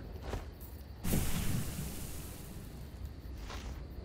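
A loud rushing swell sweeps in and fades.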